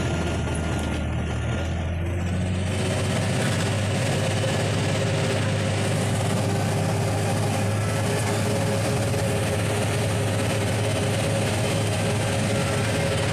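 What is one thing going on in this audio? A large vehicle's engine drones steadily from inside the cab.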